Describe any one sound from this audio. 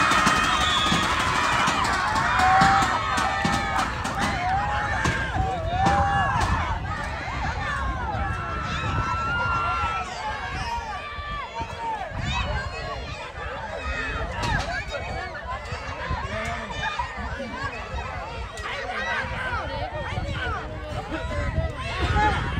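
A crowd of players and spectators shouts and calls out outdoors.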